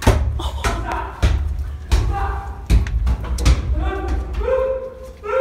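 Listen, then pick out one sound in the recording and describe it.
A microphone rumbles and thumps as it is handled.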